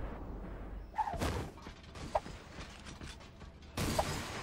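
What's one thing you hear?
Building pieces snap into place with sharp clicks.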